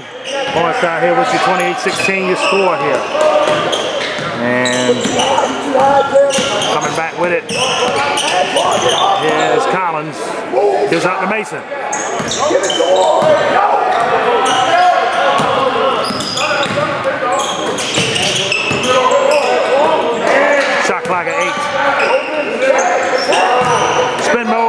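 A crowd of spectators talks and calls out in an echoing gym.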